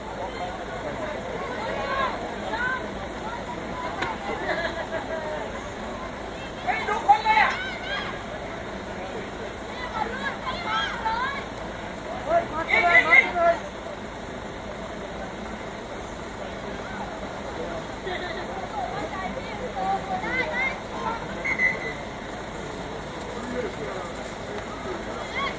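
Young women shout and call out to each other on an open field.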